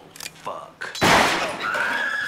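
A gunshot bangs loudly.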